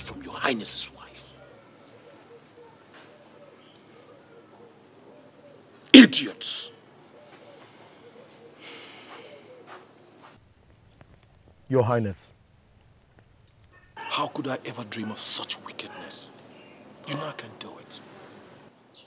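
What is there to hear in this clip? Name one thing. A man speaks sharply, in short bursts, close by.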